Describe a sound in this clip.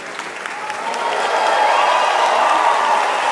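A woman sings loudly in a large echoing hall.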